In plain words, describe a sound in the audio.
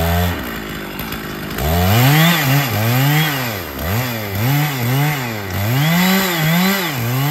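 A chainsaw engine idles and then revs up and down over and over, close by.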